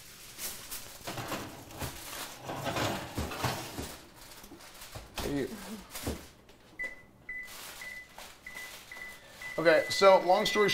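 Aluminium foil crinkles as it is handled.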